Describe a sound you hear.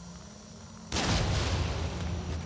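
A fiery blast bursts with a loud roar.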